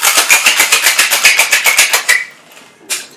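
A cocktail shaker rattles rapidly with ice.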